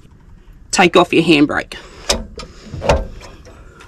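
Metal parts of a tow hitch clink and clunk.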